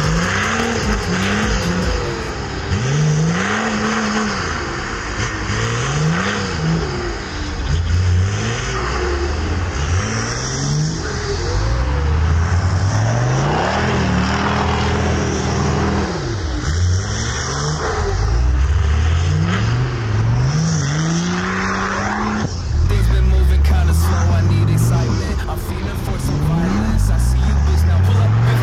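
An engine revs hard, rising and falling again and again.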